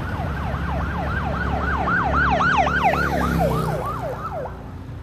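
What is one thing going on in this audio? A fire engine's horn blares in long blasts.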